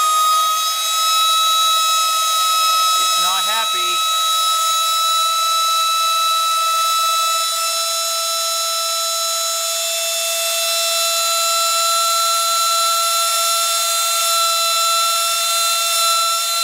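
A small electric motor hums with a steady high whine.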